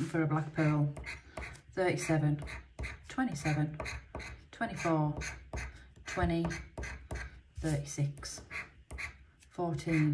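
A metal tool scrapes across a scratch card.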